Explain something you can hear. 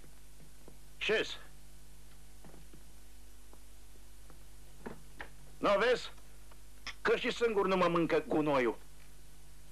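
A man speaks firmly to another man.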